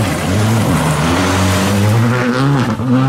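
Gravel sprays and crackles under spinning tyres.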